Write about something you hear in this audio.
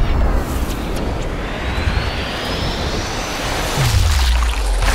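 A bullet whooshes through the air in slow motion.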